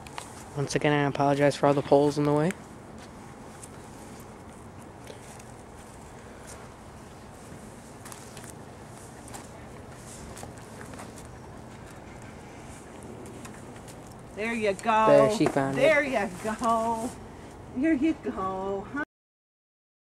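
An elderly man talks to a dog nearby, in an encouraging voice.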